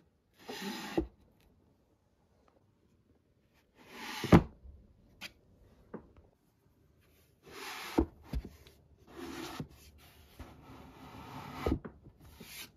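A hand taps the book spines with soft thuds.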